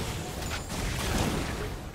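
An explosion bursts in the game.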